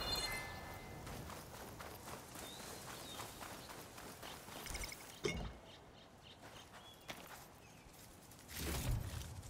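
Footsteps crunch on dry dirt and gravel.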